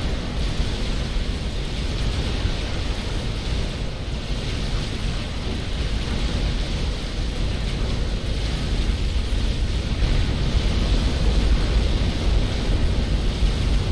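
Explosions and gunfire rumble and crackle throughout a large battle.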